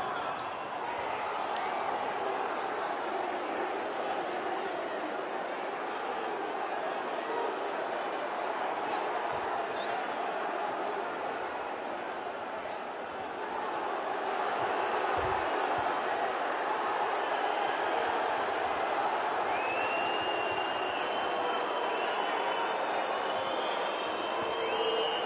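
A large crowd murmurs and cheers in an echoing arena.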